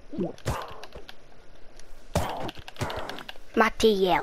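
A sword strikes a creature with sharp hits.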